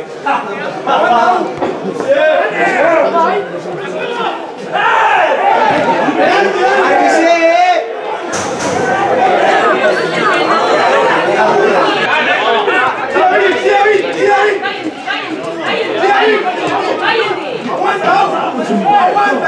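A crowd of men talk and shout close by, outdoors.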